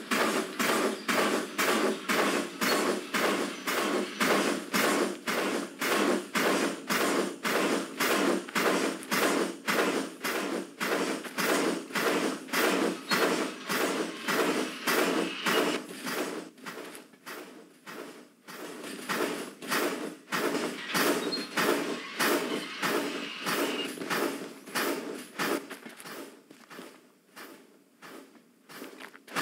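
A steam locomotive chuffs in a quick, steady rhythm, growing softer later on.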